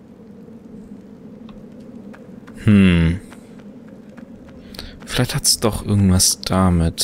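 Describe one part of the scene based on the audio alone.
Footsteps tap on a stone floor in an echoing room.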